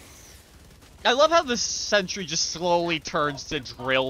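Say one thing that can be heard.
A young man speaks loudly and with animation into a microphone.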